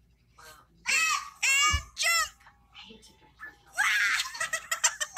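A young boy exclaims excitedly, close up.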